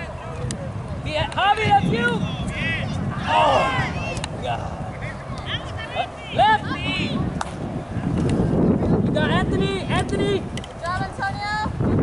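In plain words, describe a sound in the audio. Children shout excitedly across an open field outdoors.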